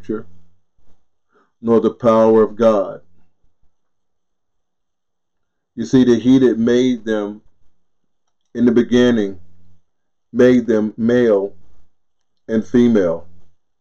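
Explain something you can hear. An older man speaks calmly and thoughtfully into a close microphone, with pauses between phrases.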